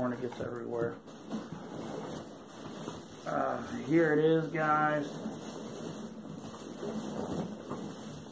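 Paper rustles as a man handles it.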